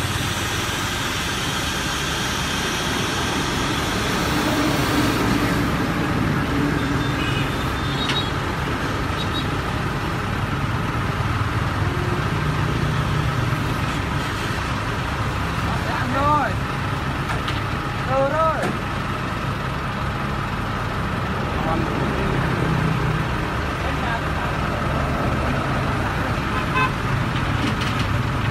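A heavy diesel engine rumbles steadily close by, outdoors.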